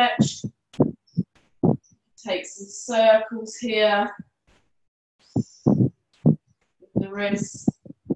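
A woman speaks calmly and slowly through a microphone.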